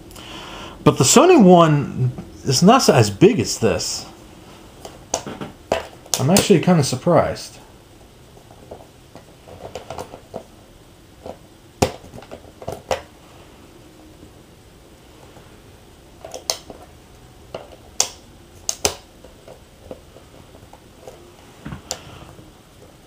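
Plastic game controllers click and knock as they are lifted from and set into a charging stand.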